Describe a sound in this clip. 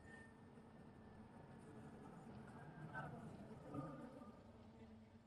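Car tyres splash through puddles on a wet road.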